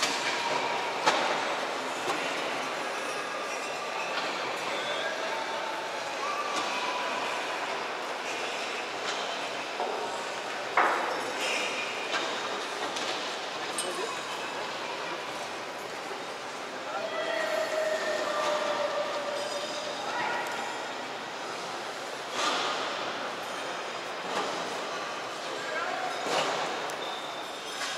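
A crowd murmurs and chatters far below in a large echoing hall.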